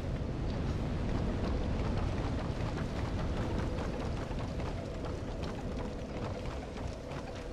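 Footsteps clank on wooden ladder rungs in a steady rhythm.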